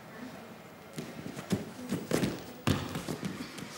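A girl's feet and hands thump on a gym mat.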